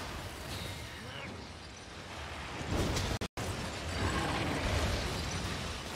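Icy wind whooshes and roars around in gusts.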